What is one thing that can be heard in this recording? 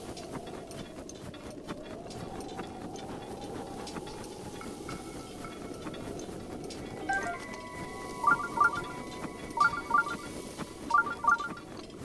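Footsteps crunch through sand.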